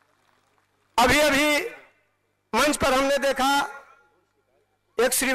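A man speaks with emphasis into a microphone, heard through loudspeakers with an outdoor echo.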